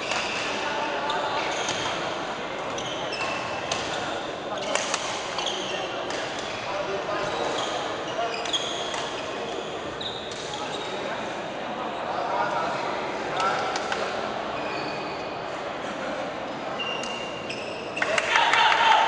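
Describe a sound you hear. Shoes squeak sharply on the court floor.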